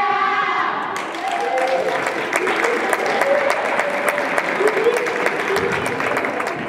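A group of young women cheer and shout.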